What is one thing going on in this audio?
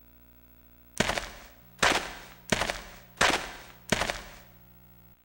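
Heeled footsteps knock on a hard floor.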